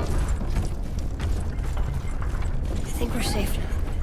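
Heavy footsteps thud on wooden boards.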